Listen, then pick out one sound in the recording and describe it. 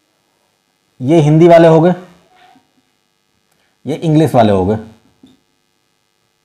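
A man speaks clearly into a close microphone, in short phrases.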